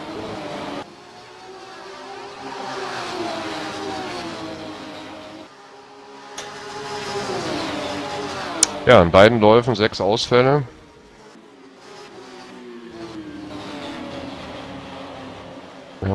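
A racing car engine roars, its pitch rising and dropping with gear changes.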